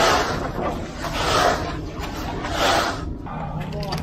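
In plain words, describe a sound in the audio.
A board scrapes across wet concrete.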